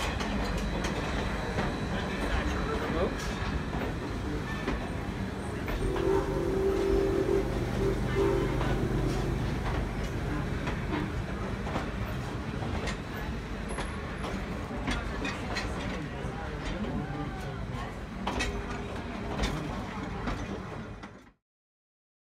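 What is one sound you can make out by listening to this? Train wheels click and clank over rail joints.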